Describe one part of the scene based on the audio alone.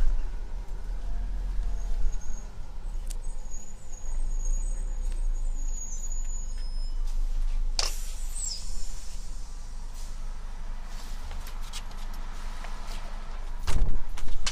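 A CNG transit bus engine idles close by.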